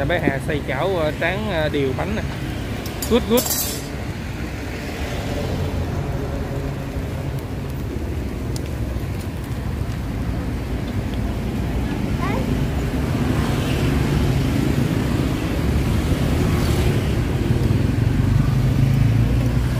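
Thick batter bubbles and sizzles in a hot pan.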